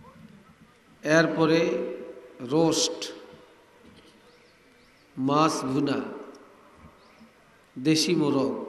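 An elderly man preaches loudly and with feeling into a microphone, in bursts with pauses, in a reverberant open space.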